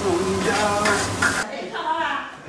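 A spatula scrapes inside a metal wok.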